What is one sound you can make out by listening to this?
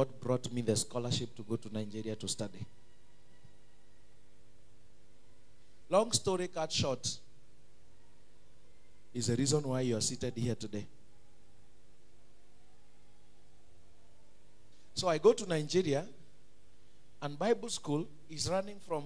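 A man preaches with animation through a microphone and loudspeakers, pausing between phrases.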